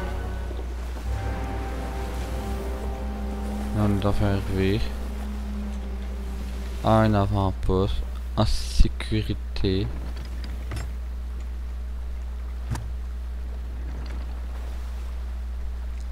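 Waves wash against a wooden ship's hull.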